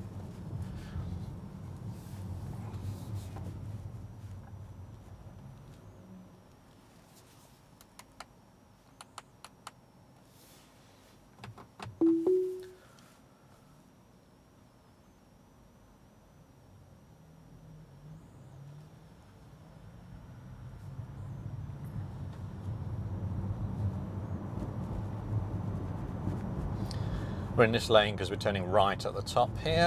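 Tyres rumble on a paved road, heard from inside an electric car.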